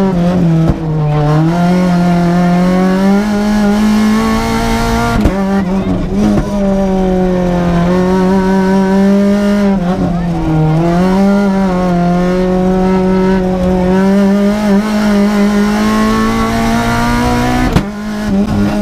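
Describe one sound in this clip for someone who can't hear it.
Gears clunk sharply as they shift.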